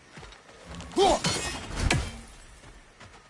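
An axe whooshes through the air and strikes with a loud crack.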